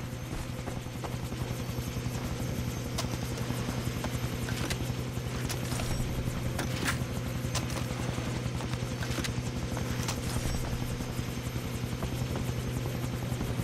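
Footsteps crunch on grass and gravel.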